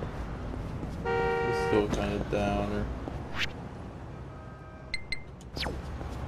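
A phone menu beeps with short electronic tones.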